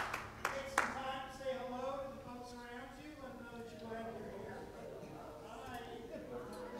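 A congregation sings along.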